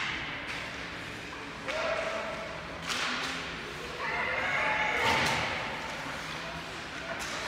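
Skates scrape across ice in a large echoing hall.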